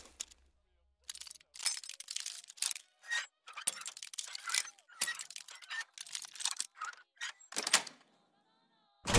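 A lock pick scrapes and clicks inside a lock.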